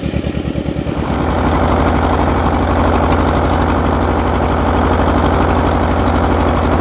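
A tractor engine rumbles loud and close, as if heard from the driver's seat.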